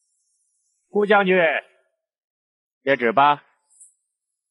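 A man speaks in a raised, announcing voice.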